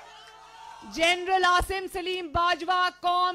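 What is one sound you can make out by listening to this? A woman speaks loudly through a microphone.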